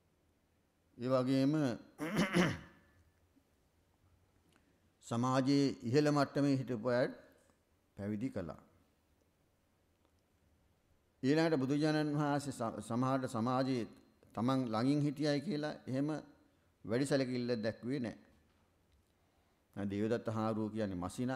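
A man speaks slowly and calmly into a microphone, with long pauses.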